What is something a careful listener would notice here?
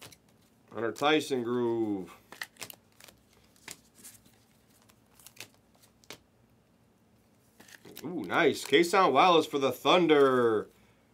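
Trading cards rustle and click as they are shuffled by hand.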